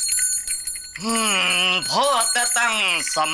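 A man chants in a high, wavering, sing-song voice.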